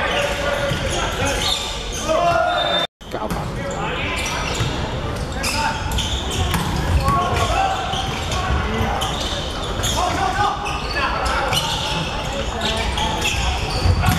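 Spectators chatter in the background.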